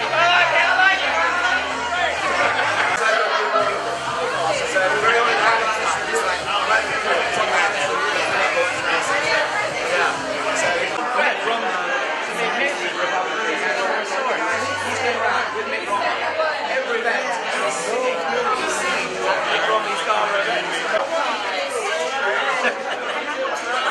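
A crowd of men and women chatter loudly all around in a busy, echoing room.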